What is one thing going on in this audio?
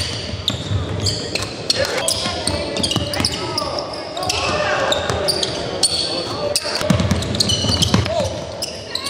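A crowd of spectators murmurs in the background.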